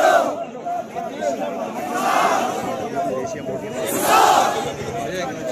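A large crowd of men chants slogans loudly outdoors.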